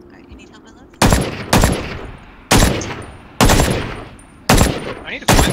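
A rifle fires single loud shots with a sharp echo, one every second or so.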